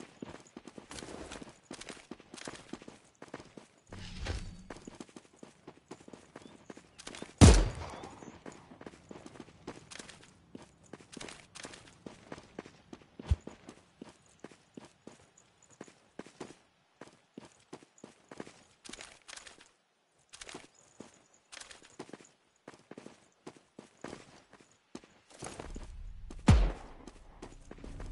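Footsteps crunch quickly over grass and dirt.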